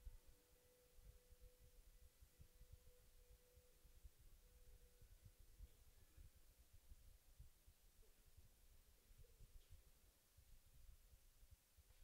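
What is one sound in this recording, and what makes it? Horses' hooves thud softly on soft dirt.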